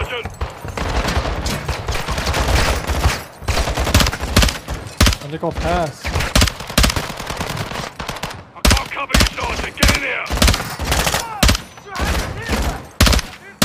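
Rapid gunfire rings out in bursts, close by.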